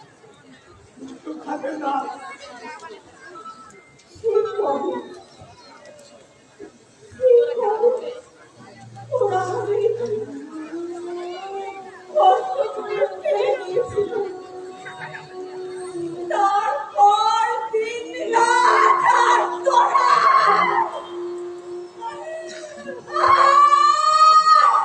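Men speak loudly and with feeling on a stage, heard from a distance in the audience.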